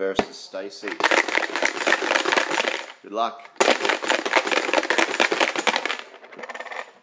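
Small objects rattle hard inside a plastic box being shaken.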